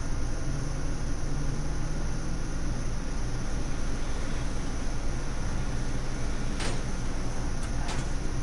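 A car engine rumbles steadily as a vehicle drives along a road.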